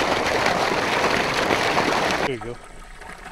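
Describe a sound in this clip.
Water gushes from a pipe and splashes into a pond.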